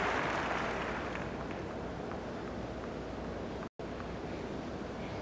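A crowd murmurs softly in a large arena.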